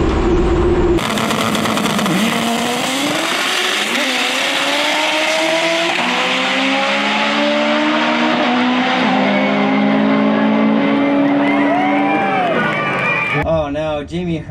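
A drag racing car roars off and speeds away down the strip.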